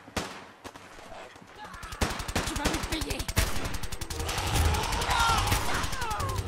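Gunshots crack and echo in rapid bursts.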